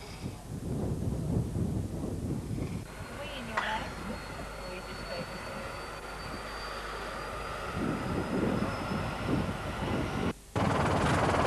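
People talk quietly nearby outdoors.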